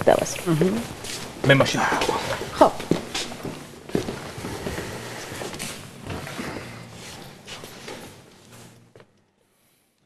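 Several men talk and laugh with animation nearby.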